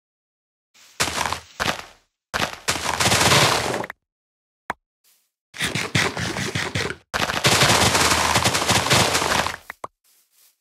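Leaves rustle and break as blocks are cleared.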